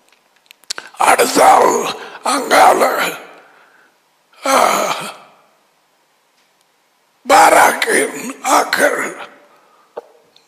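An elderly man speaks emphatically into a headset microphone, in bursts with pauses.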